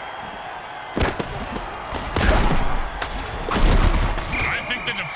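Armoured players crash together with heavy thuds.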